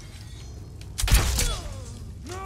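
A sword strikes an enemy with a sharp clash.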